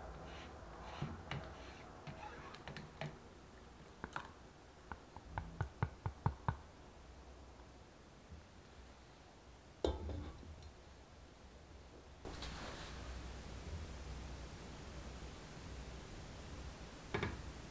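A spatula scrapes and taps against a glass bowl.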